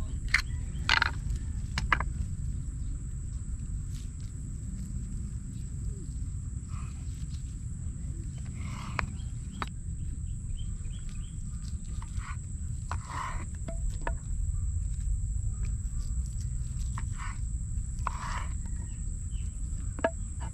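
A knife cuts through soft canned meat with light scraping.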